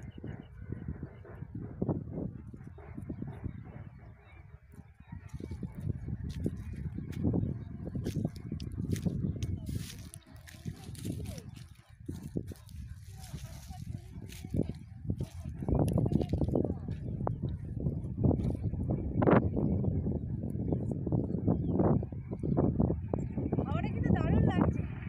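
Wind rumbles over open ground.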